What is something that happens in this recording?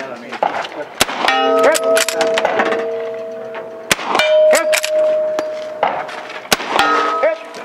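A rifle fires sharp, loud shots outdoors, one after another.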